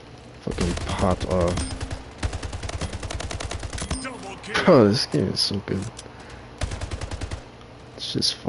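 Rapid automatic gunfire rattles from a video game weapon.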